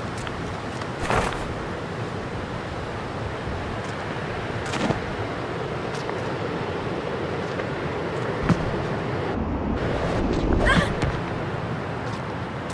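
Footsteps thud while running and jumping.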